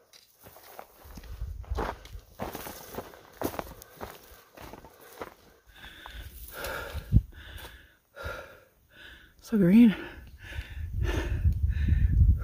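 Wind rumbles outdoors.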